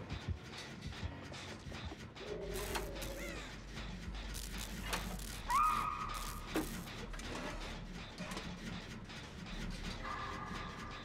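A machine rattles and clanks steadily.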